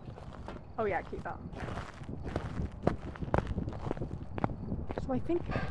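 Footsteps thud on a paved path.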